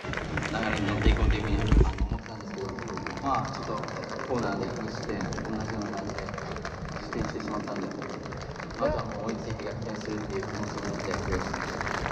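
A large crowd of fans cheers and chants throughout, outdoors in a stadium.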